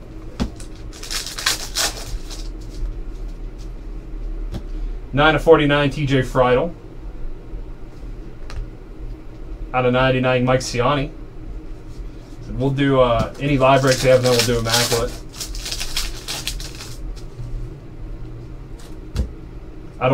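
Cards rustle and shuffle in hands.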